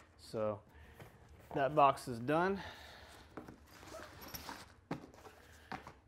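A cardboard box scrapes and rustles as it slides.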